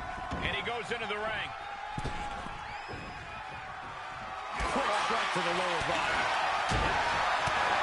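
Bodies thud heavily onto a wrestling mat.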